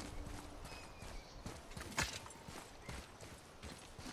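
Footsteps scuff on stone steps.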